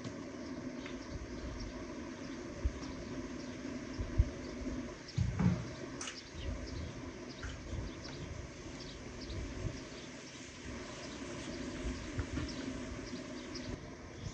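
A knife taps and cuts on a wooden board.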